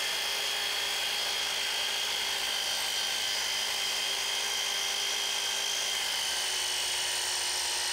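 A saw blade cuts into wood.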